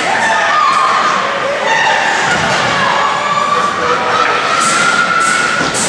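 Men talk quietly nearby in an echoing rink.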